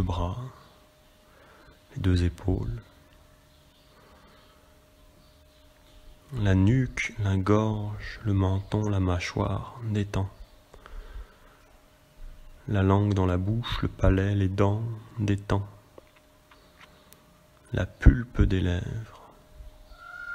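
A man speaks slowly and calmly, close by, with long pauses.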